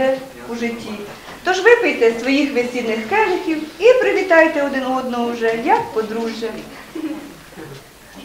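A woman speaks nearby in a slow, sing-song ceremonial voice.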